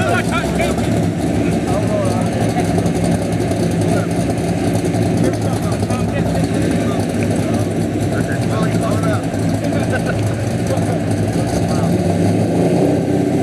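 Two car engines idle with a loud, deep rumble.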